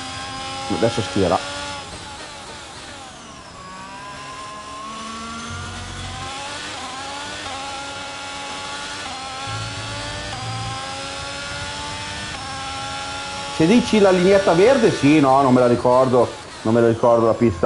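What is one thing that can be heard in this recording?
A racing car engine revs up and down as gears shift.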